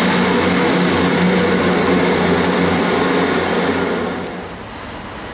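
A diesel train engine idles with a steady hum.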